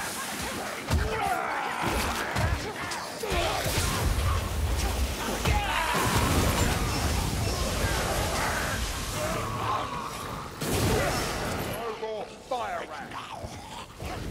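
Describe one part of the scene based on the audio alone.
Blades strike and thud against creatures.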